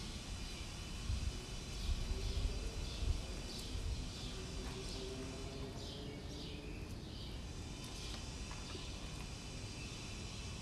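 Paper crinkles and rustles in a man's hands.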